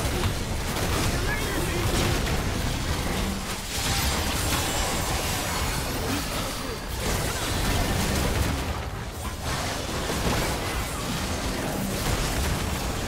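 Magic blasts crackle and burst in a rapid fight.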